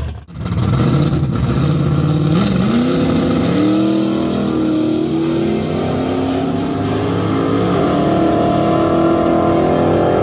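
A car engine roars loudly as it launches and accelerates away, rising in pitch.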